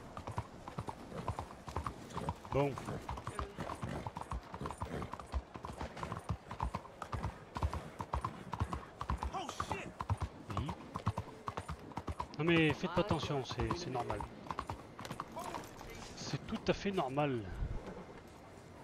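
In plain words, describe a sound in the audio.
Horse hooves clatter quickly on cobblestones.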